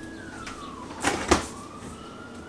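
A fridge door clicks open.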